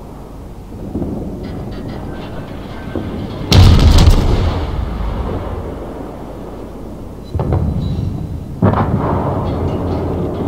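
Shells splash and explode in the water.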